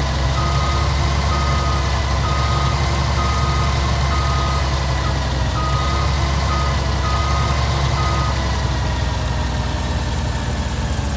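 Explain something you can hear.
A combine harvester engine drones steadily as the machine rolls slowly along.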